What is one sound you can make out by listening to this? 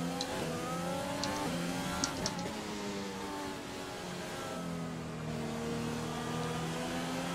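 A racing car engine whines at high revs, rising and dropping as the gears shift.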